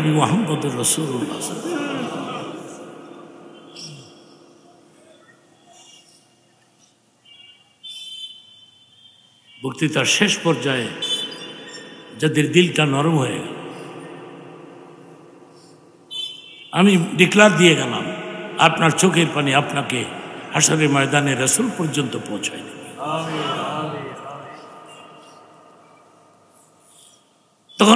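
An elderly man preaches with animation into a microphone, his voice echoing through loudspeakers.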